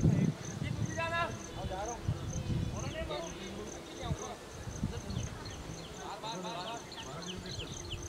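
Men call out to each other from across a field.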